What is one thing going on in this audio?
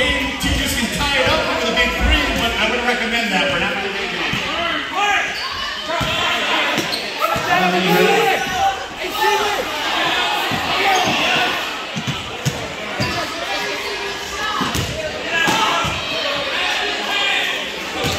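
Spectators talk nearby.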